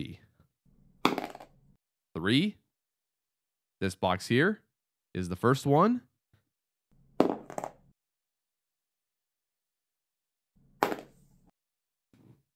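A die is tossed and clatters on a cardboard surface.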